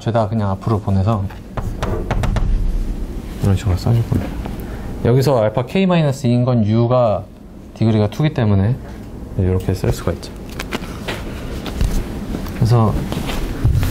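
A young man lectures calmly.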